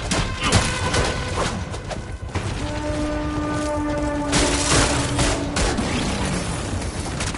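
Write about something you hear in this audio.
A blade swishes through the air and strikes.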